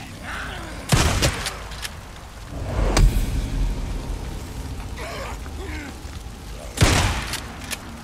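Gunshots ring out loudly a few times.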